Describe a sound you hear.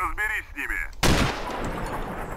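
A rifle fires a loud single shot.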